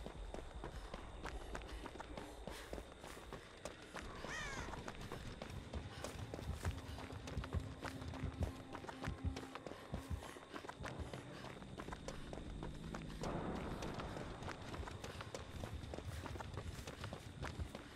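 Running footsteps thud on dirt and dry grass.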